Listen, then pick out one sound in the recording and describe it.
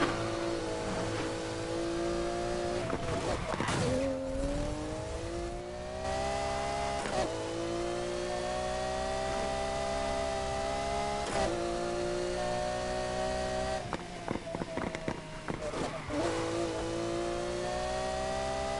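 A sports car engine roars steadily, rising and falling in pitch as gears shift.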